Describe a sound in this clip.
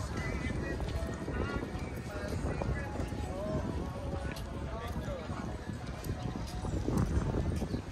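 Men's voices chat faintly nearby as people pass by on foot.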